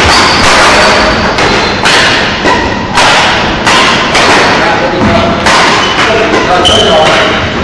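Badminton rackets hit a shuttlecock in a large echoing hall.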